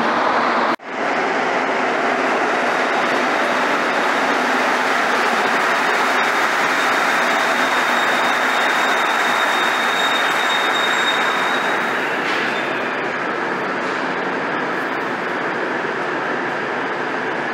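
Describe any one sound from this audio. A rubber-tyred metro train pulls into an echoing underground station.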